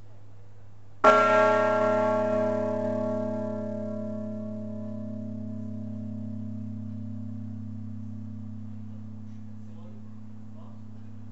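A church bell strikes once and rings out, slowly fading.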